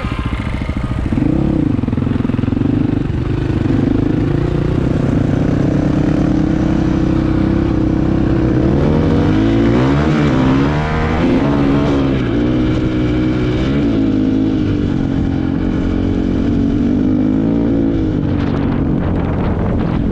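A motorcycle engine revs up and down as the bike rides along.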